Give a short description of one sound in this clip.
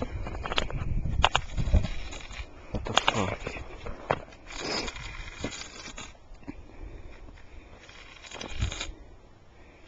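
A stick scrapes and crunches in snow.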